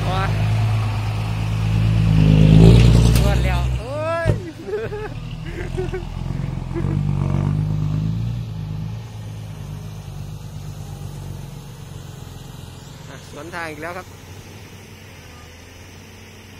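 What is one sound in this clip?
A truck's diesel engine rumbles loudly close by, then fades as the truck drives away.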